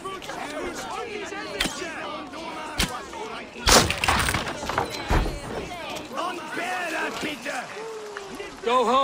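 A crowd of people shouts with agitation.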